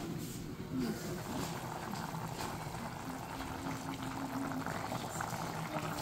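A curry bubbles and sizzles steadily in a pan.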